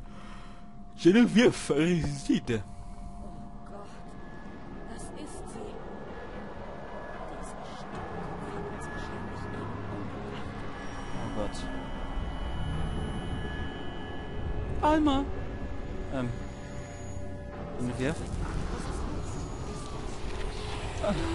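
A woman speaks anxiously, close by.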